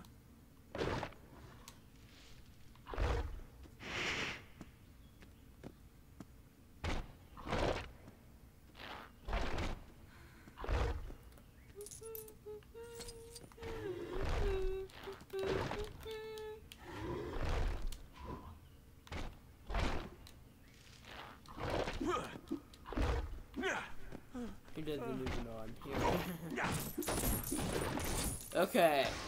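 A ghostly creature swoops about with repeated whooshing sounds.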